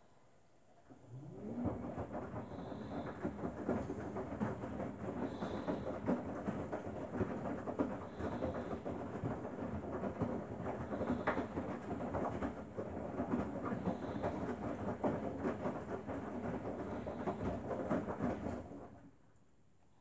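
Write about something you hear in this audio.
A washing machine motor whines as the drum turns.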